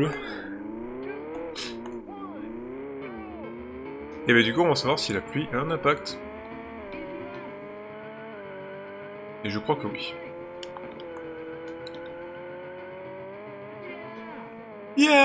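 A video game race car engine hums and whines, climbing in pitch as it speeds up.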